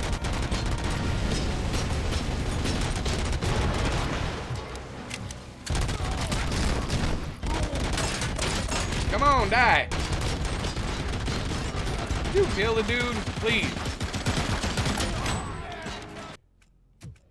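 Rapid gunfire crackles and booms.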